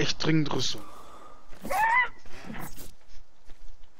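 A creature's blow lands with a heavy thud.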